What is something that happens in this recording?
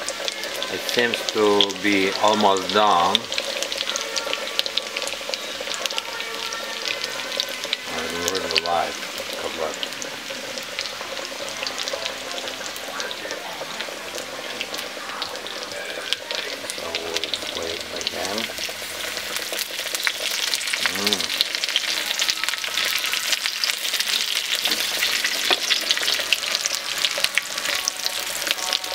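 Food sizzles and crackles steadily in hot oil in a frying pan.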